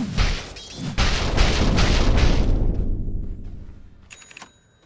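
A magical teleport whooshes and fades away.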